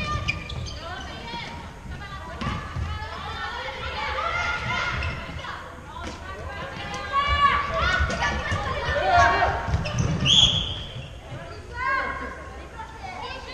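Shoes squeak sharply on a hard court floor in a large echoing hall.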